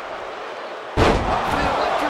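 A heavy body thuds onto a wrestling ring mat.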